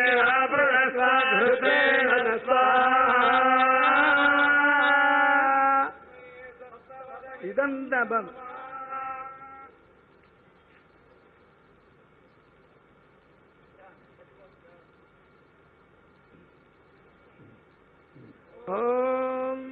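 A man chants loudly in a drawn-out, singing voice.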